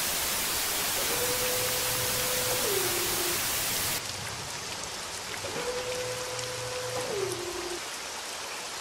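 A mechanical hatch slides open with a humming whir.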